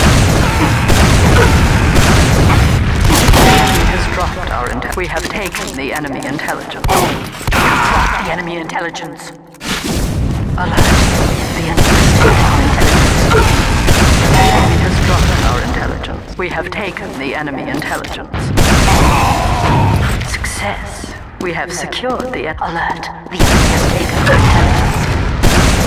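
Gunshots and explosions boom repeatedly.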